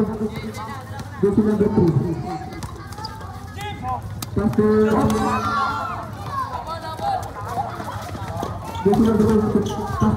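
A basketball bounces on a hard court.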